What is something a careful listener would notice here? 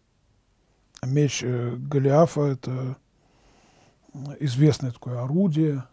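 A middle-aged man reads aloud calmly and slowly, close to a microphone.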